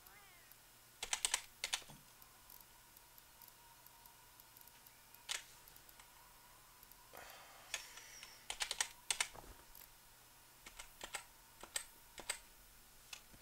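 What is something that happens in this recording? Menu clicks and chimes sound in short bursts.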